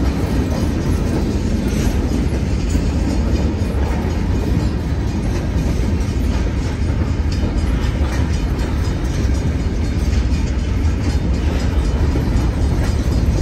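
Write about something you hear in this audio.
Freight cars rumble heavily past close by over a bridge.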